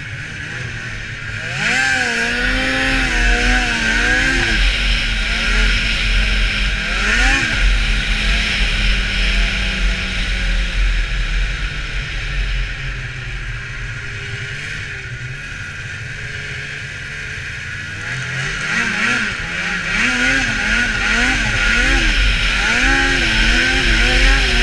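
A snowmobile engine drones close by, revving up and down as it speeds over snow.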